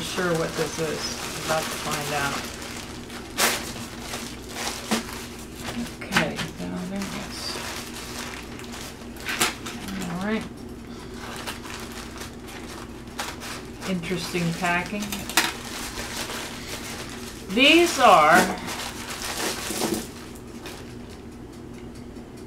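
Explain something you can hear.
A plastic mailing bag crinkles and rustles as hands handle it.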